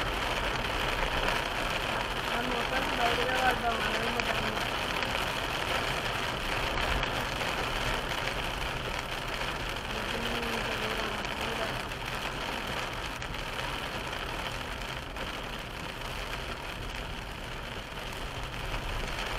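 A car drives along a wet road with a steady rumble and hiss of tyres.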